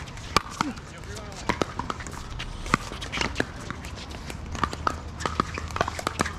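Paddles pop sharply against a plastic ball outdoors.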